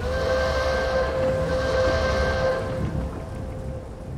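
Tank treads clank as a tank drives off.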